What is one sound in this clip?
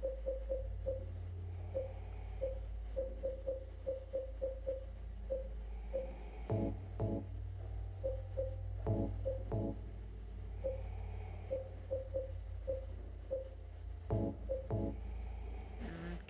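Short electronic beeps sound quickly, one after another.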